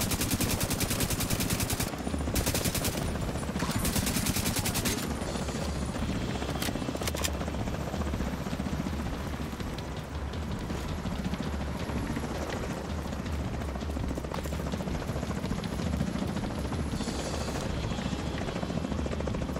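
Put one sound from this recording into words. Rapid gunfire rattles in fast bursts.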